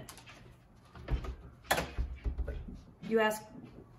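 A door handle rattles.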